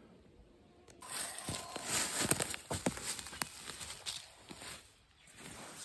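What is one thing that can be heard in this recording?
Footsteps rustle and crunch on dry leaves and twigs.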